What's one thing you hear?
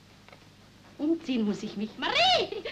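A woman laughs joyfully close by.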